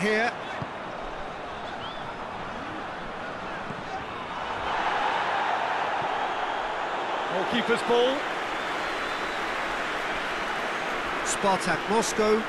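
A large crowd roars steadily in a stadium, swelling louder partway through.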